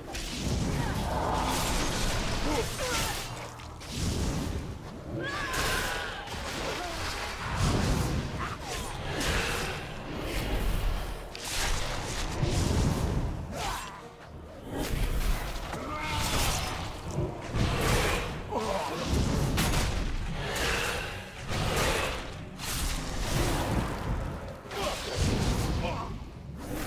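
Weapons clash in combat.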